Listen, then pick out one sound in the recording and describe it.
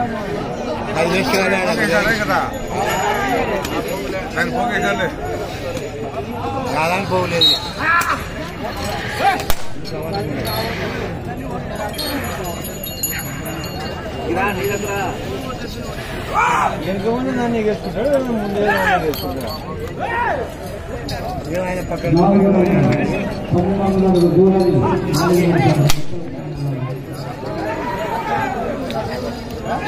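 A crowd of men shouts and chatters outdoors.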